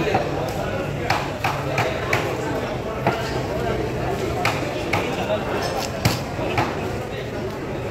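A knife slices through fish flesh with soft scraping sounds.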